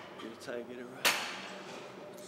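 Gym cable weights clank once.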